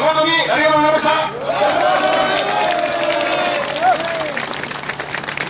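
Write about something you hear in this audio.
Men in a crowd chant loudly in long, drawn-out calls outdoors.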